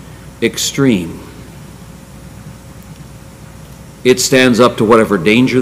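An elderly man speaks emphatically into a microphone, with pauses.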